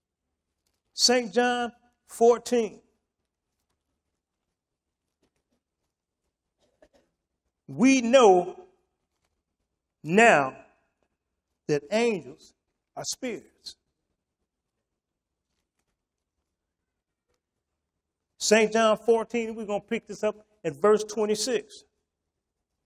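An elderly man speaks slowly and calmly through a microphone, in short phrases with long pauses.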